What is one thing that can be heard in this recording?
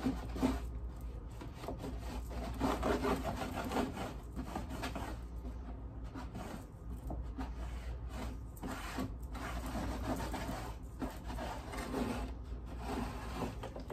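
A cloth rubs and squeaks against a plastic surface.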